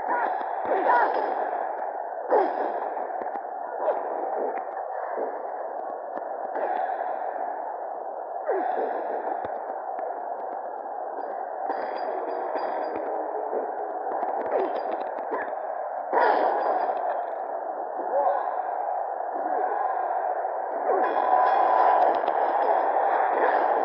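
Heavy blows and body slams thud on a wrestling ring.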